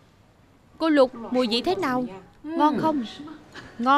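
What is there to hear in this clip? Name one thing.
A woman asks a question brightly, close by.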